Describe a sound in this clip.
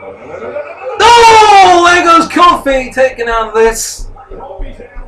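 A young man lets out a loud, drawn-out shout.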